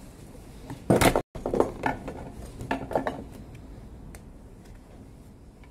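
Small metal parts clink and rattle against a power tool.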